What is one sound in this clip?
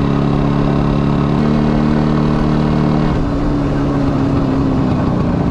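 A motorcycle engine drones steadily as the bike rides, its pitch shifting with gear changes.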